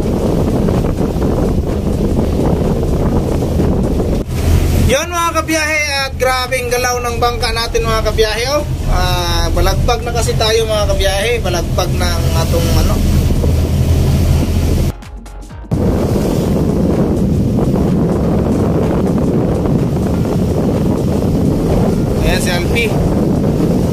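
Water rushes and splashes against a boat's hull.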